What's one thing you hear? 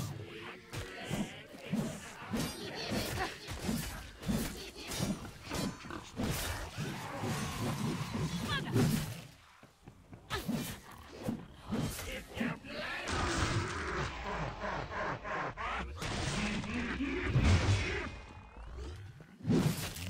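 Blades slash and hack into monsters with wet, heavy impacts.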